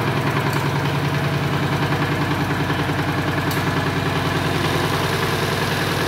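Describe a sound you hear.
A small diesel engine chugs steadily close by.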